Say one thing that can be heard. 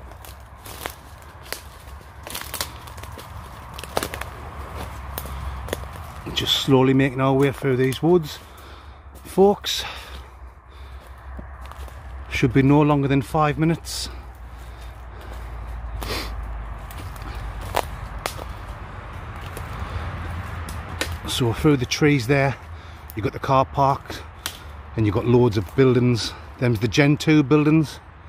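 Footsteps crunch over dry leaves and twigs.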